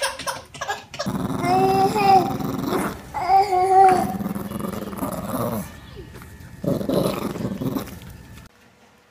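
A small dog growls playfully.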